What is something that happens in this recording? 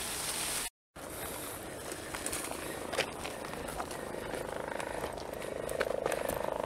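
Footsteps scuff on sandy ground.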